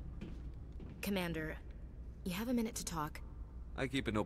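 A young woman asks a question calmly.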